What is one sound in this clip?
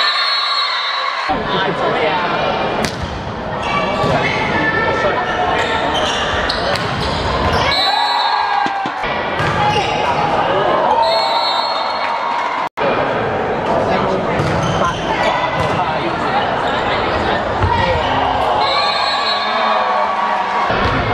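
Sports shoes squeak on a court.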